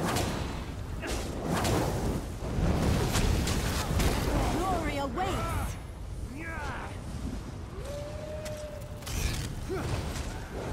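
Magic spells whoosh and boom in a battle.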